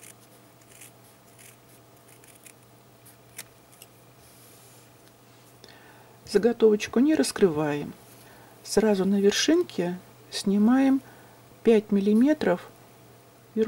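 Scissors snip quietly through fabric.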